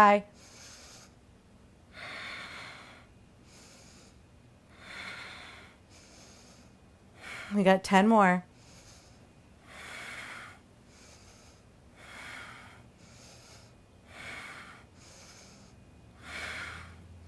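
A young woman breathes out sharply with each sit-up, close by.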